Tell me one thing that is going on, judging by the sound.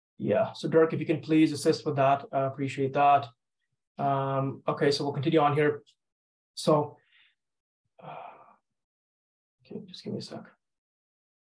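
A man speaks calmly through a microphone, as if over an online call.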